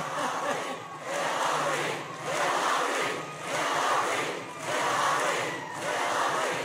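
A large crowd chants in a steady rhythm.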